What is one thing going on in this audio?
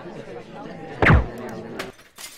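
A rifle shot cracks once.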